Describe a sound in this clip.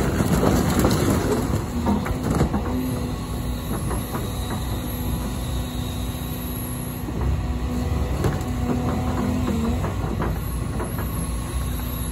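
Wood and debris crack and crash as an excavator tears into a house.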